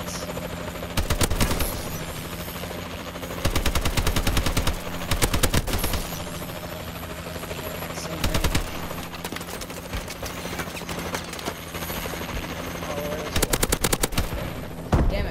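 Rapid bursts of automatic gunfire ring out.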